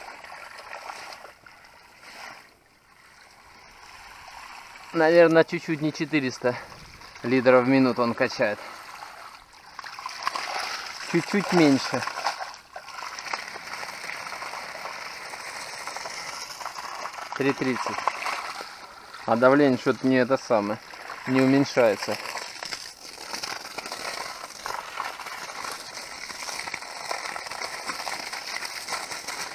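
Water gushes from a hose and splashes onto wet ground.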